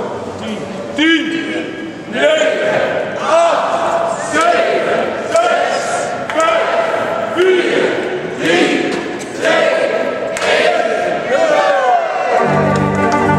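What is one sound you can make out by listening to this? A crowd of men and women sings together.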